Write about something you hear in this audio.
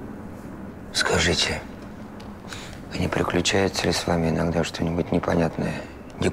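A young man speaks quietly and calmly, close by.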